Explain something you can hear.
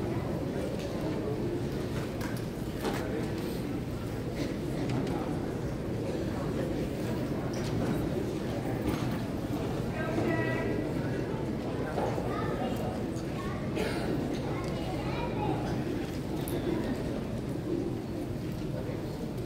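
A piano plays along with the singing.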